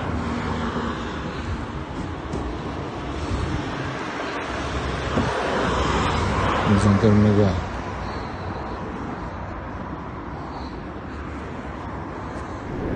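A van engine idles close by.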